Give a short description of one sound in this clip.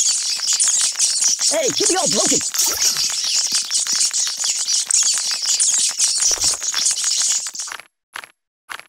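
A swarm of cartoon rats squeaks and scurries in a game.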